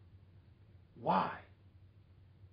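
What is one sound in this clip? A man says a short word close by.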